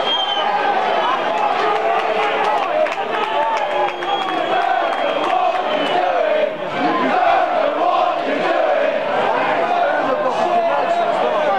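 A large crowd of men sings and chants loudly outdoors.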